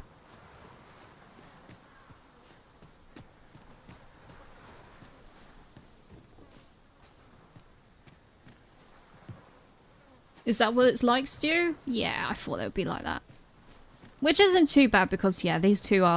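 Footsteps patter quickly over grass and stone.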